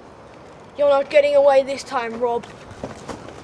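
A young boy speaks loudly close by.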